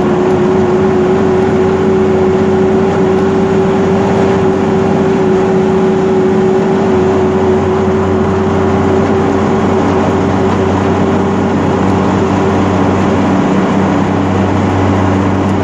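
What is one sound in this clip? Tyres roll along the road with a steady rushing noise.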